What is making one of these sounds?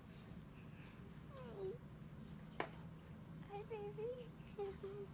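A young girl babbles and talks sweetly close by.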